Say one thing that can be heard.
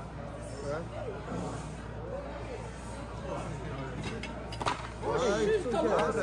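Cutlery scrapes and clinks on a plate.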